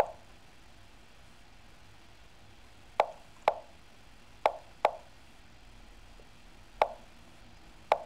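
Chess pieces click sharply into place, now and then.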